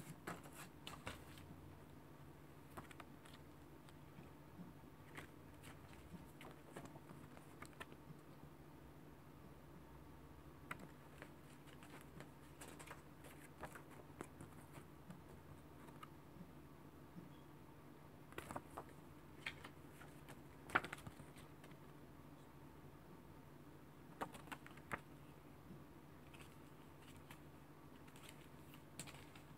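Paper pages rustle and flap as a booklet is handled.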